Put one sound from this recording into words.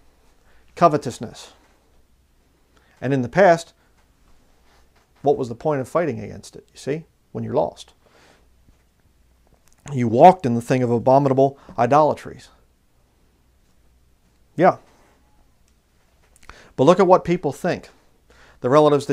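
A man speaks calmly and clearly close to a microphone, in short phrases with pauses.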